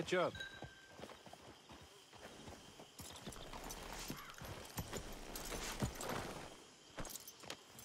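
Horses walk with hooves thudding on soft ground.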